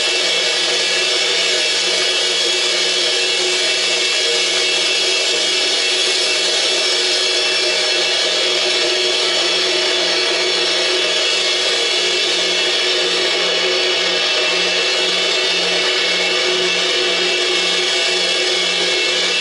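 A cymbal is struck again and again, ringing in a dense wash.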